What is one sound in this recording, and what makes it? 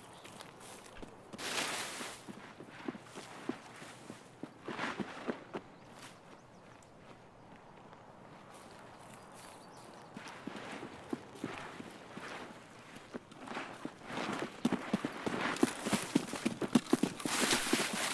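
Leaves and branches rustle loudly.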